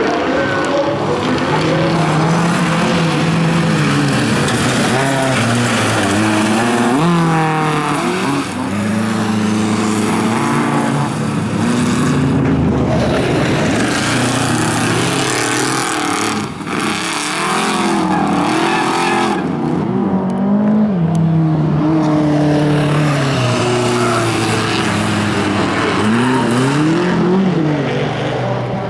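Race car engines roar and rev hard, rising and falling in pitch.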